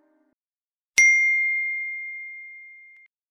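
A bell chimes once and rings out slowly.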